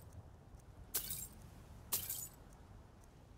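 Coins jingle briefly, twice.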